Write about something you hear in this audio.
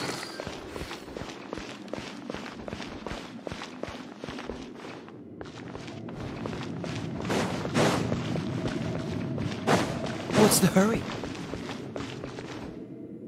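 Quick footsteps patter on hard stone.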